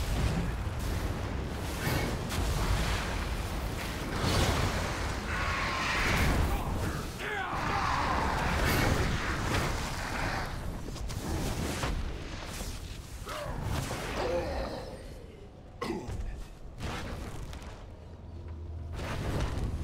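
Spell effects crackle and burst during a fantasy battle.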